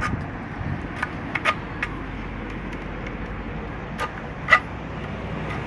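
A metal pick scratches and taps on a plastic pipe.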